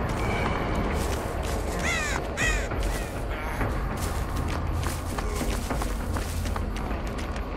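Footsteps run quickly through grass and undergrowth.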